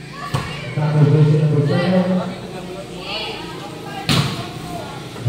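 A player's hands strike a volleyball with sharp slaps.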